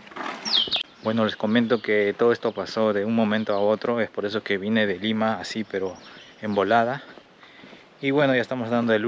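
A young man speaks close to a microphone with animation.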